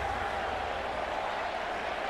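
A large crowd cheers and shouts in a wide open space.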